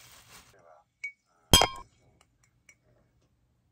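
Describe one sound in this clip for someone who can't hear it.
Ice cubes clink in a glass jar.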